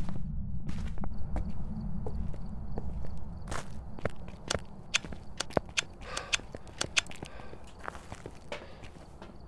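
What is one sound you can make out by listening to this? Footsteps crunch along a path at a walking pace.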